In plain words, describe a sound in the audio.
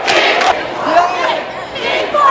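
Teenagers laugh and shout close by.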